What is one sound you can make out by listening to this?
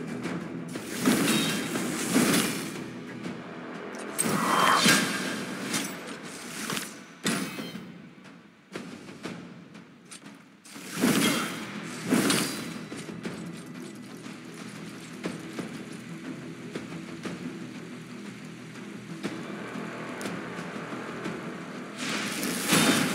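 Magic spells burst with whooshing, crackling blasts.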